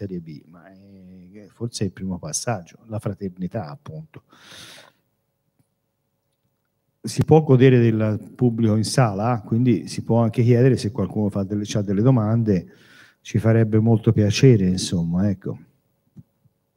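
An older man speaks calmly into a microphone.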